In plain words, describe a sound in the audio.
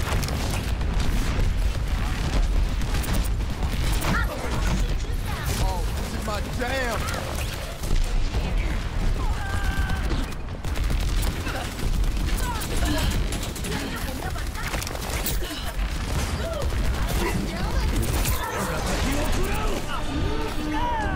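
Energy weapons fire in rapid zapping bursts.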